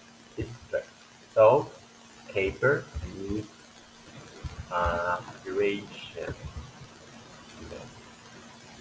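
A man speaks slowly and clearly over an online call, pronouncing words carefully.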